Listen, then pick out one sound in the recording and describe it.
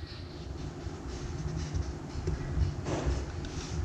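A fist thumps softly on dough on a table.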